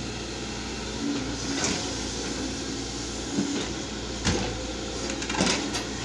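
Tracks of an excavator clank and squeak as the machine turns.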